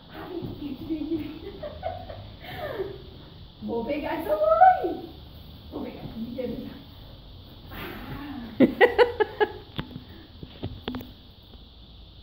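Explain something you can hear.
A woman talks playfully to a dog nearby.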